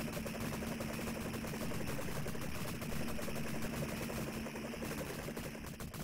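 Electronic game music plays steadily.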